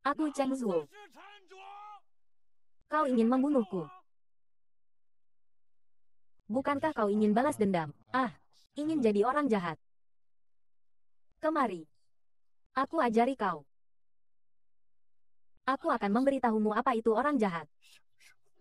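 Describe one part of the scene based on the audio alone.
A young man speaks with strong emotion, close by.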